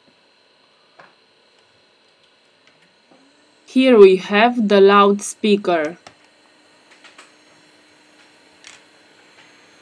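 A plastic pry tool clicks and scrapes against a phone's frame.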